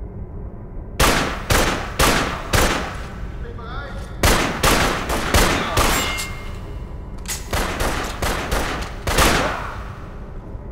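Rifle shots crack in quick bursts and echo in a large hall.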